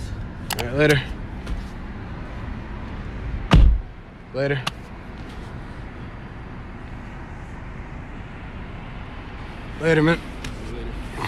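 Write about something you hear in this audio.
A man speaks up close.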